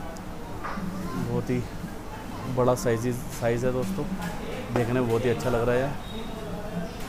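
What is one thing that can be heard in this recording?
A young child talks excitedly nearby.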